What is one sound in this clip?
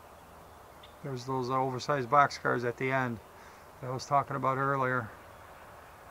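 A train horn blows in several long and short blasts.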